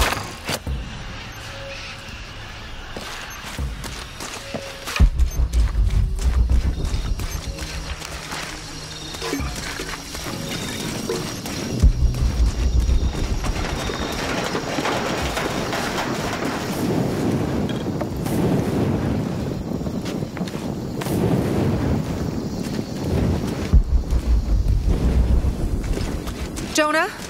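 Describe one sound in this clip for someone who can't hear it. Footsteps crunch over leaves and dirt.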